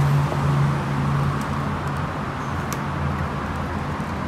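A screwdriver clicks and scrapes against a plastic part.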